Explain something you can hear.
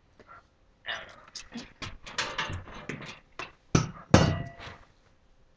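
A plastic object rattles and knocks as it is handled.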